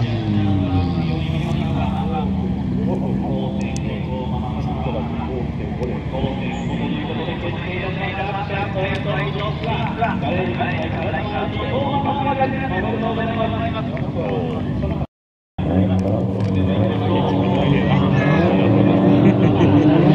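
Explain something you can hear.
Racing car engines roar and rev hard.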